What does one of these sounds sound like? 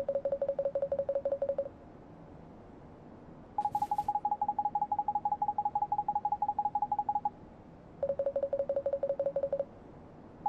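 Rapid high blips chatter in quick bursts, like text being typed out in a game.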